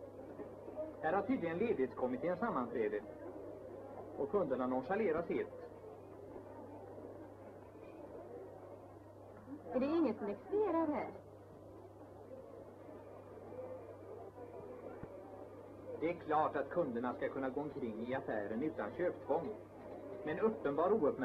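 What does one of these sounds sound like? A woman speaks calmly, heard through an old, muffled recording.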